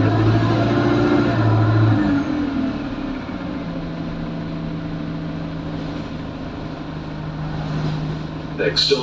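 A bus rattles and creaks as it drives.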